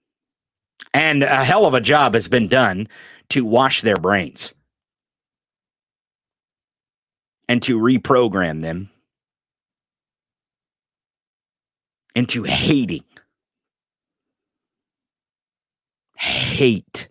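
A man speaks close into a microphone with animation, in short bursts separated by pauses.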